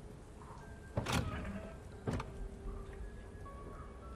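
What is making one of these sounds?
A heavy chest lid creaks open with a thud.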